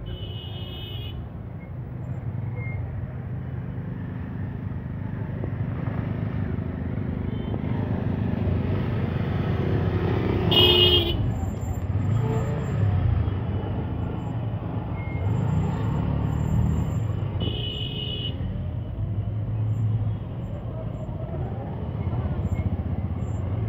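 Motorcycle and auto-rickshaw engines rumble and idle close by in heavy traffic.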